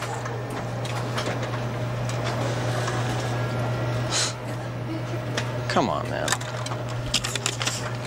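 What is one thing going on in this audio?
A photocopier hums as it runs and feeds out paper.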